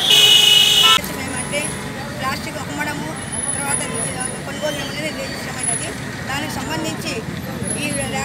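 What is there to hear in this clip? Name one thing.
A woman speaks steadily into microphones close by.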